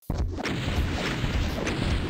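A plasma gun fires rapid bursts.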